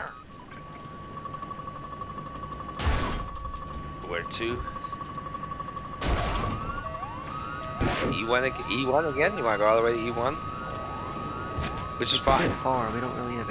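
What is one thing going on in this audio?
A warning tone beeps rapidly and steadily.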